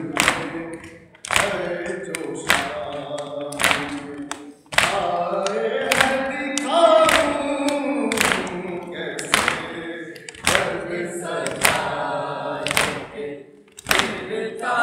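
A man chants a lament loudly into a microphone.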